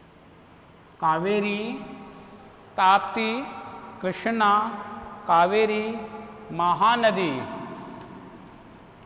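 A man speaks loudly and with animation in an echoing room.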